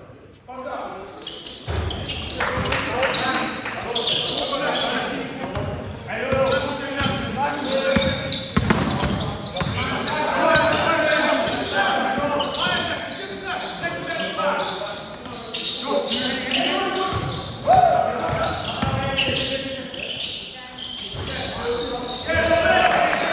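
Men shout to each other across the hall.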